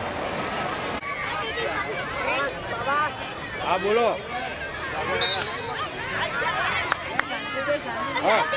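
Children shout and cheer loudly outdoors.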